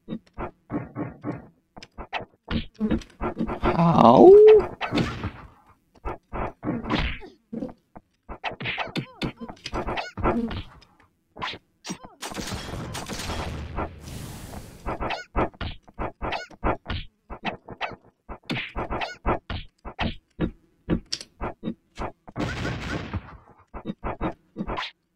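Fighting sound effects crash and whoosh in quick bursts.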